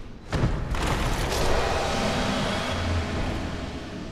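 A sparkling magical burst crackles and fades.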